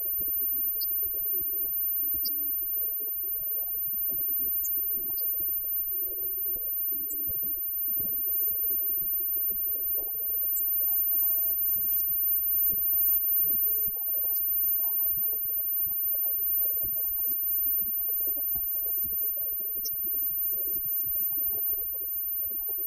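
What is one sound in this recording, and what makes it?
A live band plays amplified rock music in a room.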